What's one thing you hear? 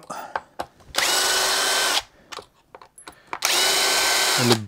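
A cordless drill whirs in short, steady bursts.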